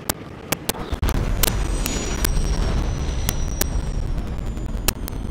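A glider opens with a deep, steady rumble.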